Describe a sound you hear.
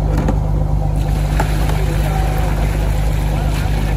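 Water splashes as fish are poured from a barrel.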